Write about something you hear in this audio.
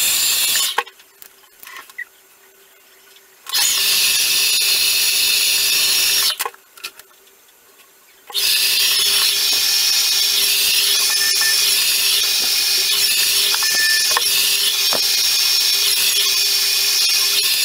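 A hair dryer blows with a steady roaring hiss, switching off and on.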